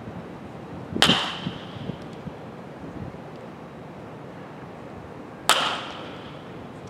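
A metal bat cracks sharply against a baseball, ringing briefly.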